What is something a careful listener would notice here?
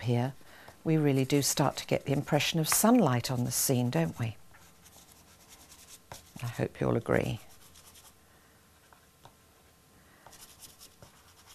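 A pastel stick rubs softly on paper.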